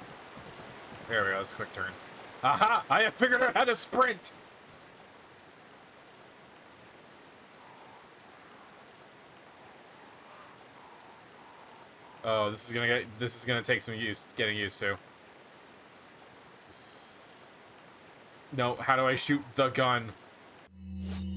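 A man talks with animation, close to a microphone, in short bursts.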